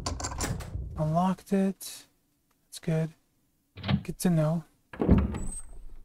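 A heavy wooden door slowly creaks open.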